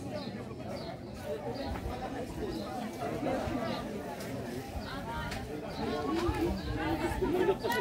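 A crowd of men and women chatters at a distance outdoors.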